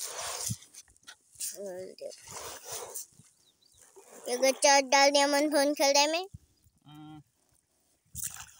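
A fishing net rustles as it is handled.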